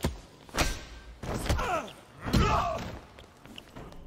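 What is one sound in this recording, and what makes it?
Heavy punches and kicks land with dull thuds.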